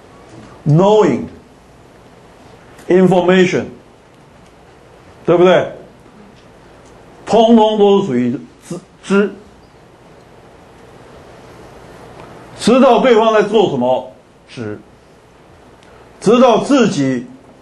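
A middle-aged man lectures calmly through a microphone, in short phrases with pauses.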